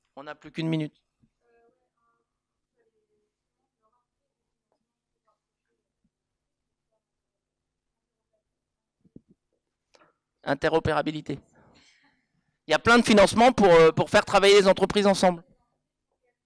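A man speaks into a microphone in short bursts, heard through a loudspeaker in a large room.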